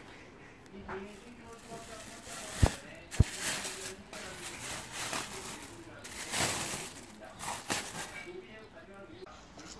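A plastic bag crinkles and rustles.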